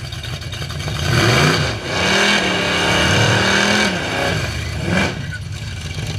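A car engine roars and revs in loud bursts close by.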